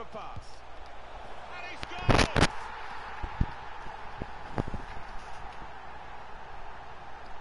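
A stadium crowd cheers loudly after a goal.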